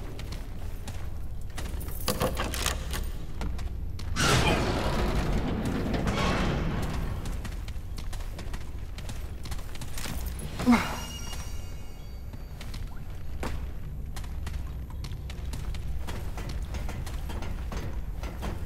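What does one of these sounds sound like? Boots thud steadily on a hard floor.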